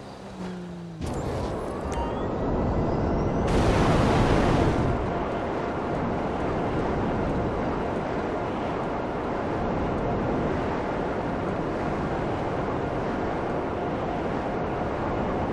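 A jet-powered flying motorbike roars through the air.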